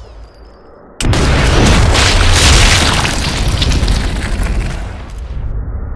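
A rifle shot booms and rumbles away in a long echo.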